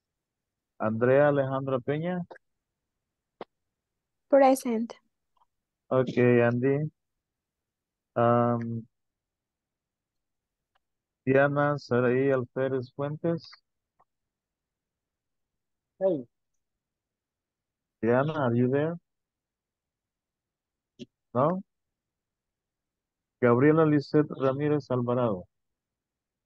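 A man speaks calmly into a microphone over an online call, in short phrases with pauses.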